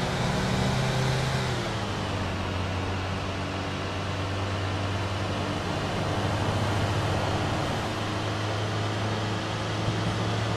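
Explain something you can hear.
Tyres roll and hiss on asphalt.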